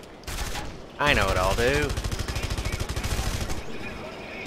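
A gun fires rapid crackling shots.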